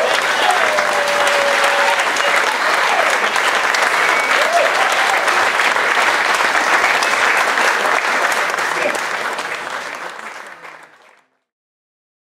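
A small acoustic band with fiddle, guitars and double bass plays in a lively room, then fades away.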